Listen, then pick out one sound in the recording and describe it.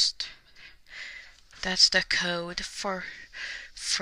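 Fingers rub and tap against a stiff card.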